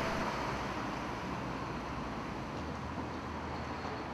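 A car drives past along a street.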